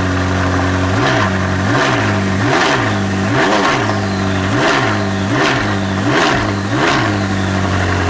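A sports car engine revs sharply again and again.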